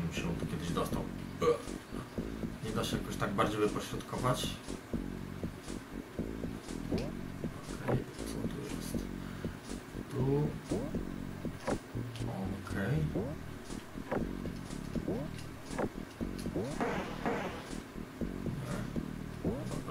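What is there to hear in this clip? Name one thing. Chiptune game music plays steadily.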